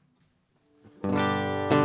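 A guitar is strummed.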